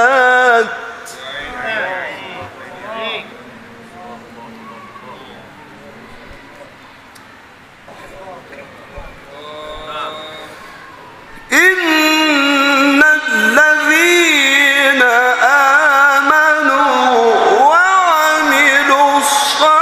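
A man chants loudly through a microphone and loudspeakers, his voice rising and falling in long melodic phrases.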